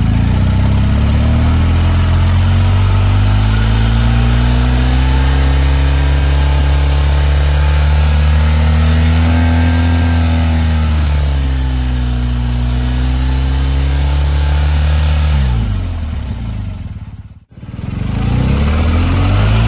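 A motorcycle engine idles with a deep, throbbing exhaust rumble close by.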